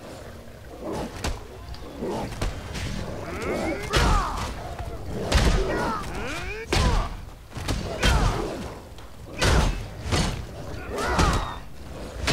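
Wild beasts snarl and growl while fighting.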